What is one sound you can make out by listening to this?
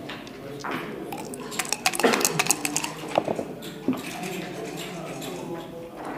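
Dice rattle and tumble onto a board.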